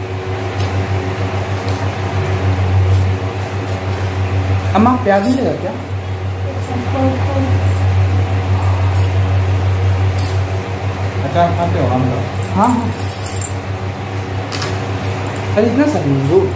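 Metal dishes clink.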